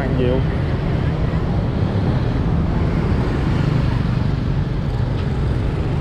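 Motorbike engines hum and buzz steadily as traffic passes close by.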